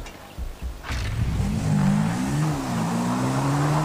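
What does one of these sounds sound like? A motorcycle engine revs up and rumbles as it rides away.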